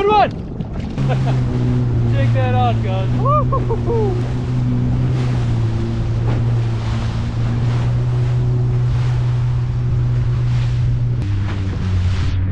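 A jet ski engine hums steadily.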